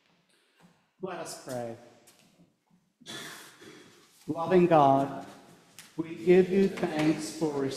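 A man prays aloud through a microphone in a large echoing room.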